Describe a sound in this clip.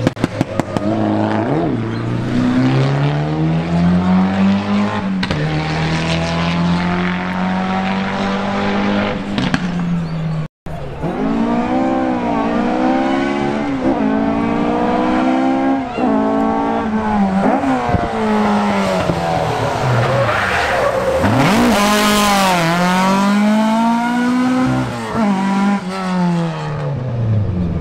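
A rally car engine revs hard and roars through its gears close by.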